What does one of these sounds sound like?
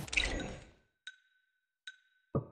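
Short electronic beeps sound.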